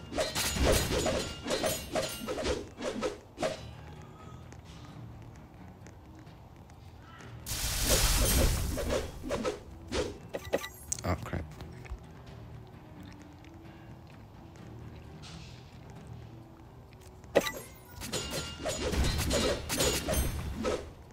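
Game spells crackle and burst with sharp electric blasts.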